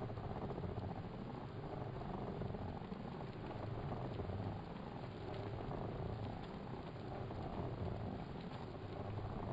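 An indoor bike trainer whirs steadily.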